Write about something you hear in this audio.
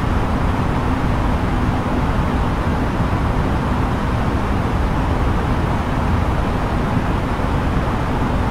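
A steady roar of air and engines fills the cockpit of an A320neo airliner in cruise.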